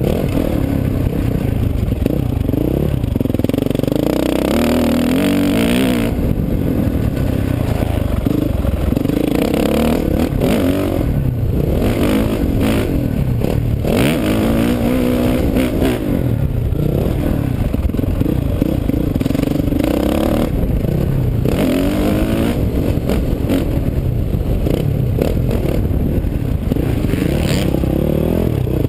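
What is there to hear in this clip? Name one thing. A dirt bike engine roars loudly close by, revving up and down.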